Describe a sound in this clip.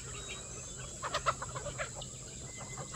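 Ducks quack loudly.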